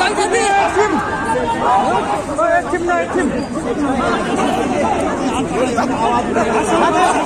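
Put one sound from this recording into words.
A large crowd of men shouts and chants loudly close by, outdoors.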